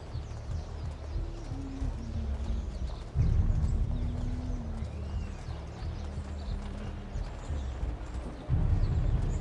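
Footsteps patter on a stone street.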